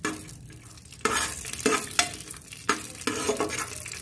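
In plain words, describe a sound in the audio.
A metal spoon scrapes against a pan.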